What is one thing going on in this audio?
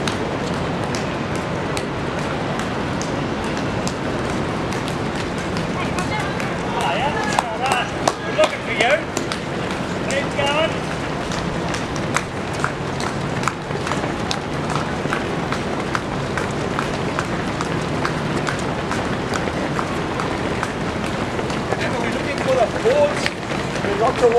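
Outdoors, a steady crowd murmur fills the air.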